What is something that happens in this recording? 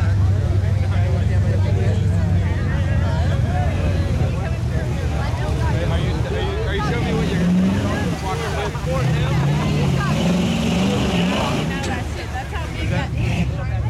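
Mud splashes and squelches under spinning tyres.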